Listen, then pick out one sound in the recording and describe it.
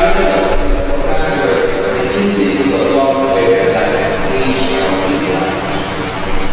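A young man speaks calmly through a microphone.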